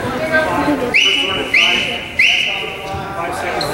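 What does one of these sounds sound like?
A referee's whistle blows three sharp times.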